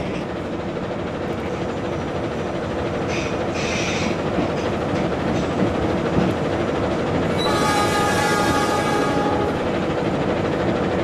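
A locomotive engine rumbles steadily from inside the cab.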